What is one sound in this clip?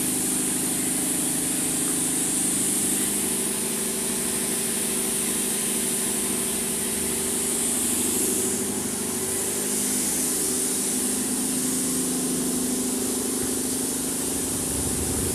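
An air-fed paint spray gun hisses as it sprays paint.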